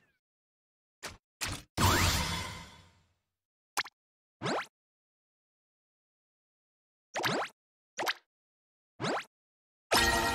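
Short interface chimes sound as game menu buttons are pressed.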